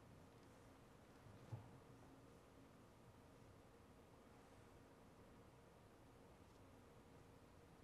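Fabric rustles faintly as long cloth is handled.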